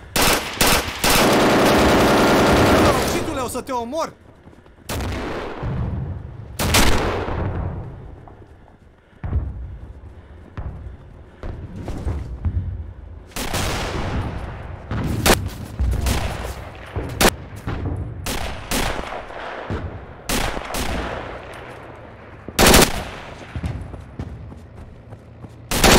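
Rifle shots crack loudly, one after another, with a ringing echo.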